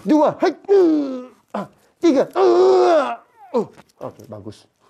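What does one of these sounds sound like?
An elderly man cries out loudly in pain, close by.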